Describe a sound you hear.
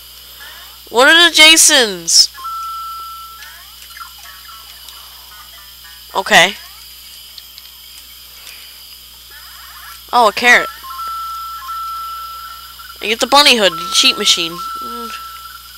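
Short electronic chiming blips sound as coins are collected.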